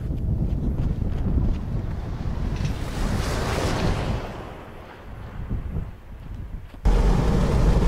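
Wind blusters across open ground.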